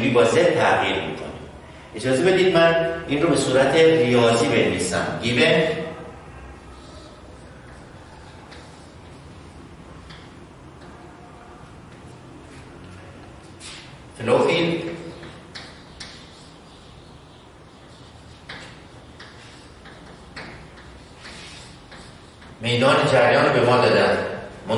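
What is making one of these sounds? A middle-aged man lectures calmly through a microphone.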